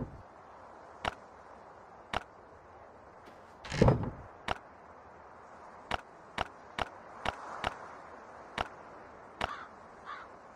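Short game interface clicks sound as items are moved between an inventory and a chest.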